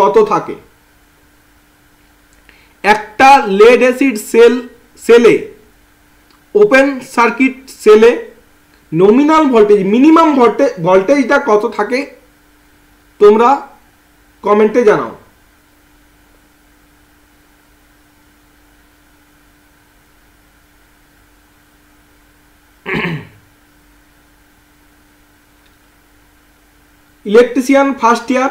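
A man speaks calmly and close to a microphone, in bursts with long pauses.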